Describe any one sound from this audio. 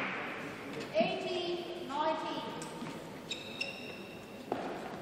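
Shoes squeak sharply on a hard court floor.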